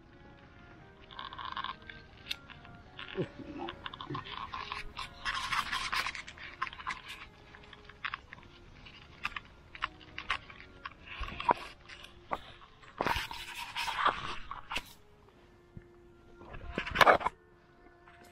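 Hands rustle and tear through leafy greens close by.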